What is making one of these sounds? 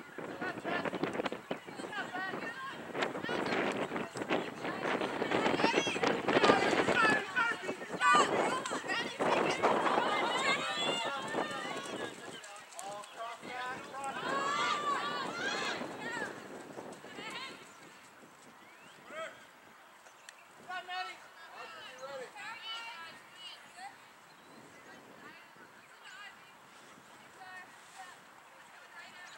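Young women shout and call to each other outdoors.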